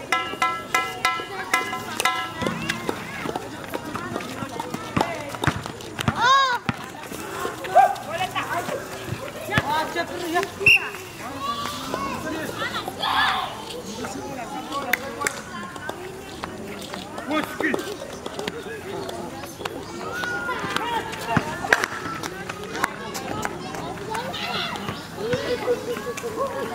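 A basketball bounces on a concrete court with sharp thuds.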